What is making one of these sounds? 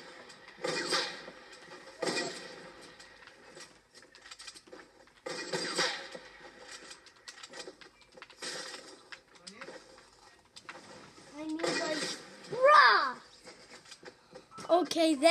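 Video game sound effects play from a television.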